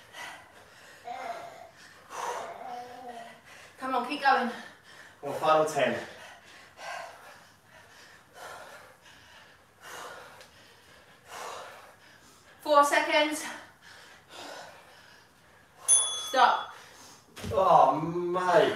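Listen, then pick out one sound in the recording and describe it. A man gives energetic workout instructions through a close microphone.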